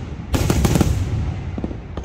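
Fireworks burst with loud booms.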